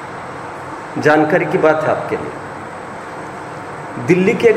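A man speaks calmly and clearly nearby, with pauses between phrases.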